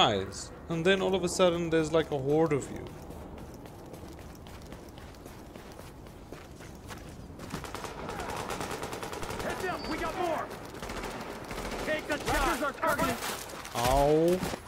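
Footsteps crunch through snow as a person runs.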